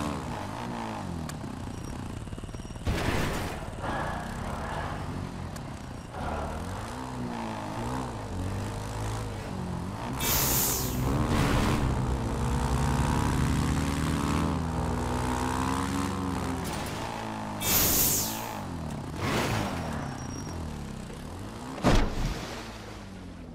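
A quad bike engine revs and drones, rising and falling in pitch.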